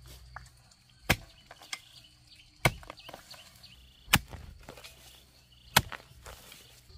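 A hoe chops into hard soil with sharp thuds.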